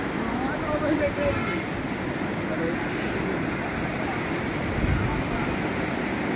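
Churning floodwater roars and rushes steadily.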